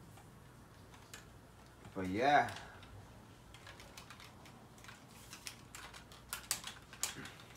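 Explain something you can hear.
Plastic parts of a toy figure click and tap as hands move them.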